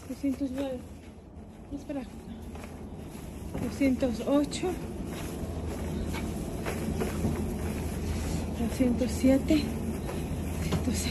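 Footsteps tap on a concrete walkway.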